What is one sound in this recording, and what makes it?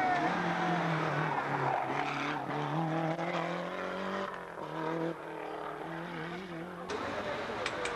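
A rally car engine roars and revs.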